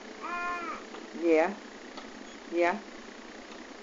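A baby babbles and squeals close by.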